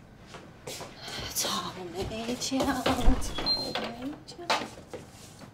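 A young woman speaks close by.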